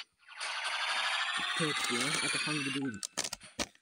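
A bright, rising electronic jingle plays as a toy capsule pops open.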